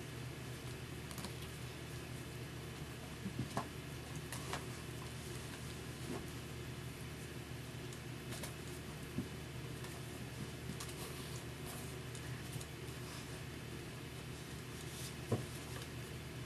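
A dog's paws patter and thump on carpet as it plays.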